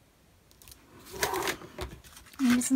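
Stiff card rustles as hands pick it up from a table.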